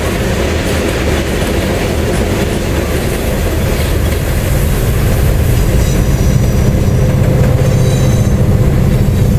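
Freight wagons rumble and clatter over rail joints close by.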